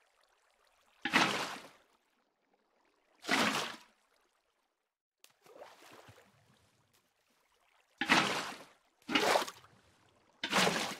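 Water splashes loudly in short bursts.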